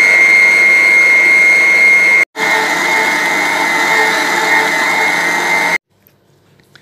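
An electric stand mixer whirs with a steady, high whine.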